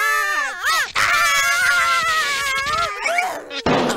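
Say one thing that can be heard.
Cartoon characters scream shrilly.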